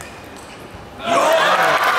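A crowd bursts into loud cheering.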